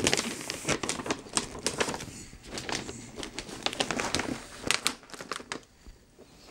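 Wrapping paper crinkles and rustles as hands handle a gift box.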